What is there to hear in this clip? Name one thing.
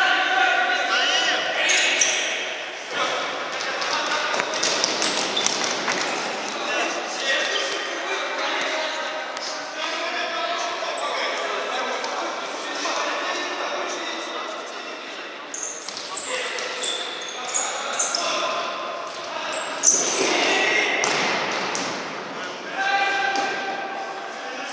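Men shout across an echoing hall.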